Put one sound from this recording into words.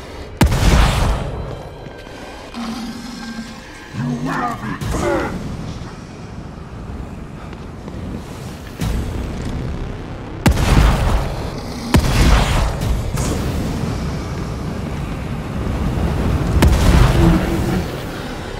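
Gunshots boom in loud bursts.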